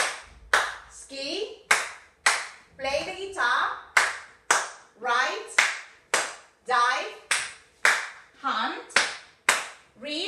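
Hands clap in a steady, quick beat.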